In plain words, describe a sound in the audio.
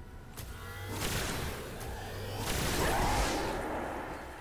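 A weapon fires in bursts.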